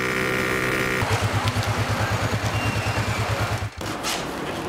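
A scooter engine idles with a low, pulsing putter.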